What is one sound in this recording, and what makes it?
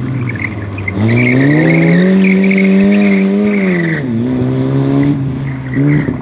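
Tyres screech on tarmac.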